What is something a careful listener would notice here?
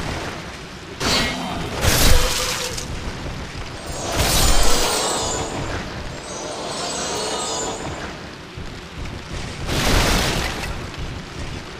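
Blades clash and slash loudly in a fight.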